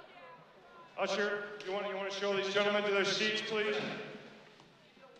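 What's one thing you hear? A man shouts loudly.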